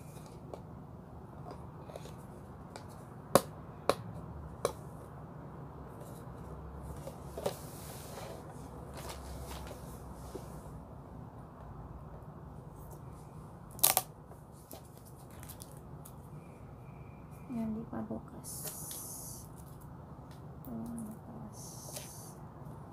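Plastic cases knock and click as they are handled.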